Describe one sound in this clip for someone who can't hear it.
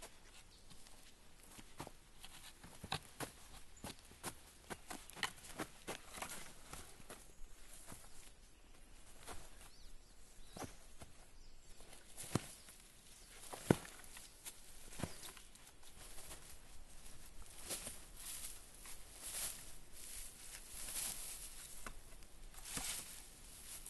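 Footsteps crunch on dry twigs and forest litter.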